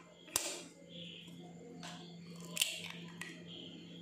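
Eggshell crackles as fingers peel it.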